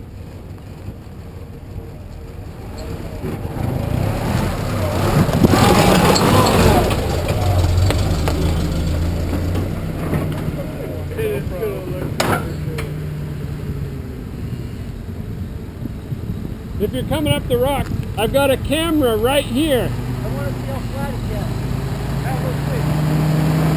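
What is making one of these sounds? An off-road vehicle's engine rumbles and revs close by.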